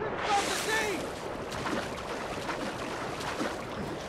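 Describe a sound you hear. Water sloshes as a swimmer paddles.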